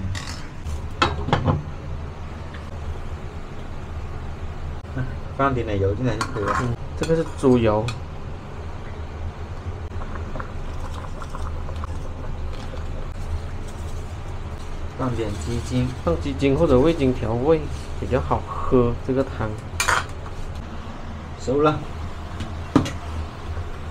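A glass lid clinks onto a metal pot.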